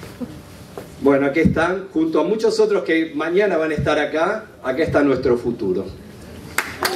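An elderly man speaks into a microphone over loudspeakers in an echoing hall.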